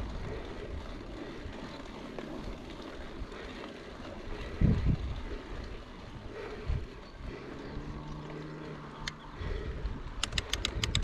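Wind blows over the rider outdoors.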